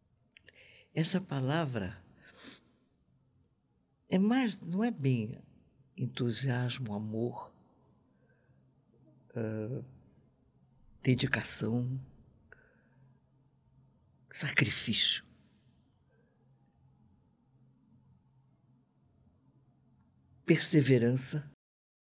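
An elderly woman speaks expressively into a close microphone, in short bursts with pauses.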